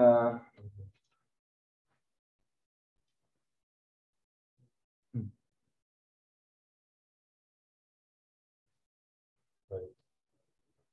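A man speaks in short bursts through a microphone, with long pauses.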